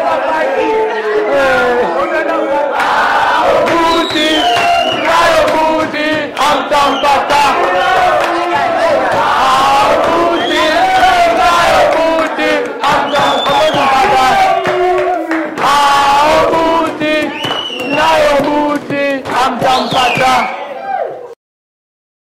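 A group of young people sing loudly together, close by.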